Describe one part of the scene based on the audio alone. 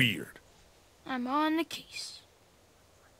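A young boy speaks briefly.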